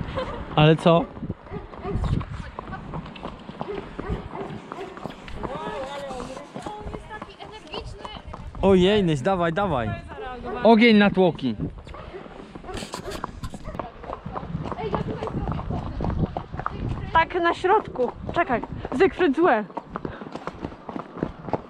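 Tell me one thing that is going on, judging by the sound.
Horse hooves clop steadily on a paved road.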